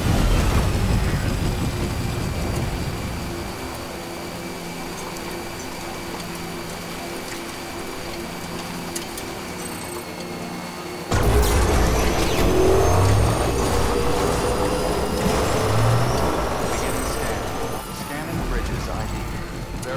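A motorbike engine hums steadily as it rides along.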